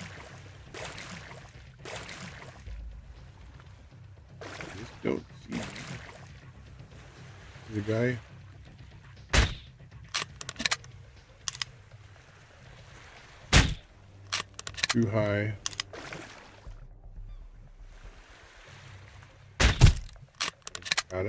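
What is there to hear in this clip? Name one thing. Water splashes and swishes as someone swims.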